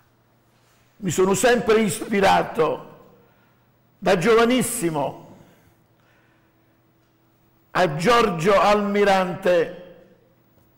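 An elderly man speaks calmly and clearly into a close microphone, in short phrases with pauses.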